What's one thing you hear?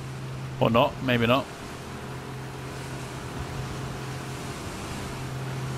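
An outboard motor hums steadily.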